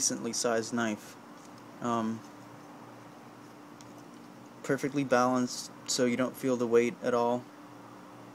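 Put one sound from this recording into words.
A folding knife is lifted off a hard surface and handled.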